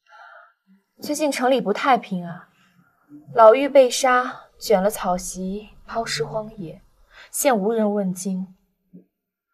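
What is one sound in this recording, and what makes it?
A young woman speaks calmly and gravely, close by.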